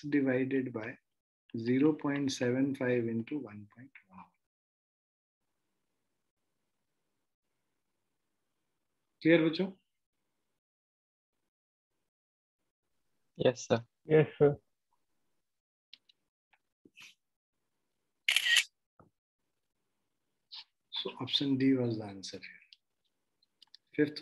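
A man speaks calmly into a microphone, explaining in short bursts with pauses.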